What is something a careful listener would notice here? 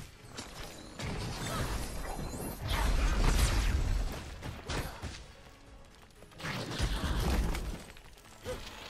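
Magic blasts burst with deep booming rumbles.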